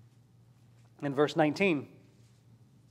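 A man speaks briefly and clearly through a microphone in a large room.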